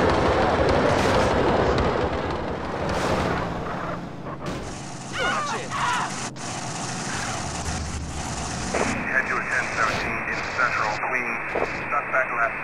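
A vehicle crashes and tumbles with metal thuds.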